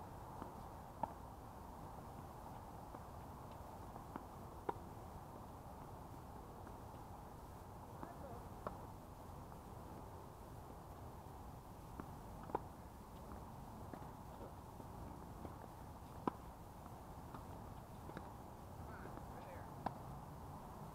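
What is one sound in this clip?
Tennis balls are struck with rackets in a steady back-and-forth rally.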